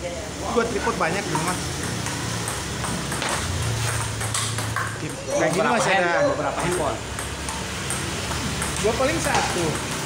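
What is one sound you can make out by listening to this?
A table tennis ball clicks against paddles and the table.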